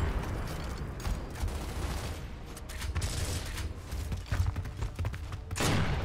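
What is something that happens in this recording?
Gunshots crack repeatedly nearby.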